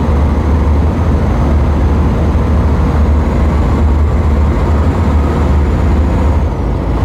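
Tyres roll along the road with a steady roar.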